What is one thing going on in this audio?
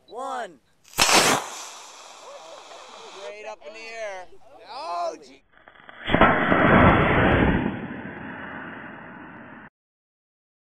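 A model rocket motor ignites with a loud rushing roar.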